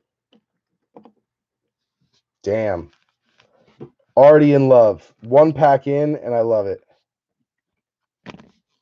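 Card packs rustle and tap softly as they are handled.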